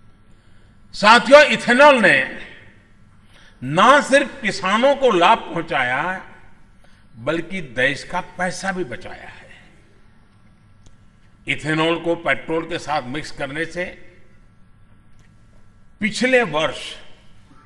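An elderly man speaks into a microphone with emphasis, in short bursts with pauses, in a large hall.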